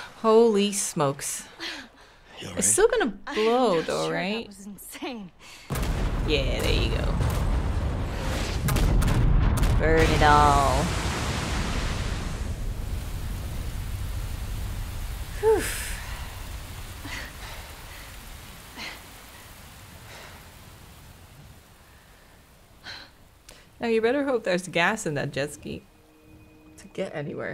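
A young woman talks casually close to a microphone.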